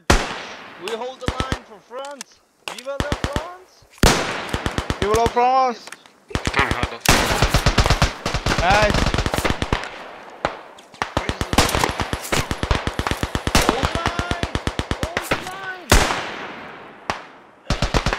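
A rifle fires loud shots that echo away outdoors.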